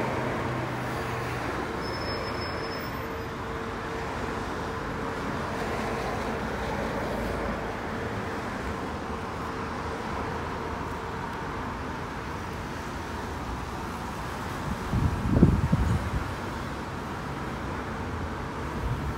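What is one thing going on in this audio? A bus engine idles nearby.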